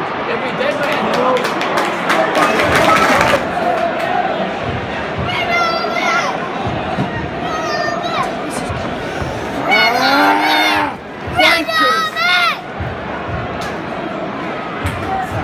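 A large stadium crowd murmurs and cheers, outdoors with a wide open echo.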